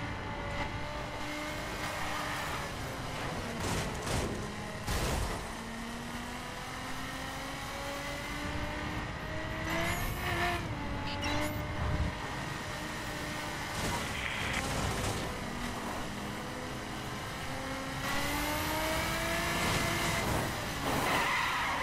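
A sports car engine roars steadily, its pitch rising and dipping as it shifts gears.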